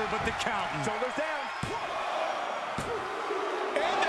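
A referee's hand slaps the mat during a count.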